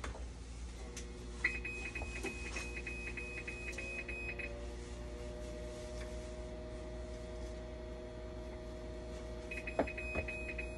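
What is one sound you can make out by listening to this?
A dialysis machine's pump hums.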